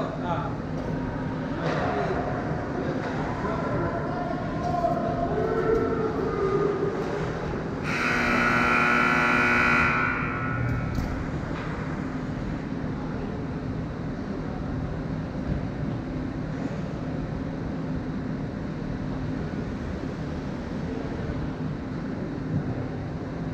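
Skates scrape and hiss across ice in a large echoing rink.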